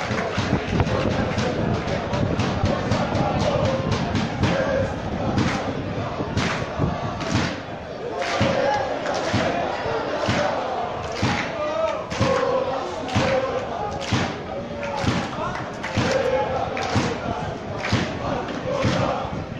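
A crowd of fans claps in a steady rhythm.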